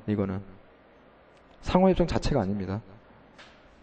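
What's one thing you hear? A man speaks with emphasis into a microphone.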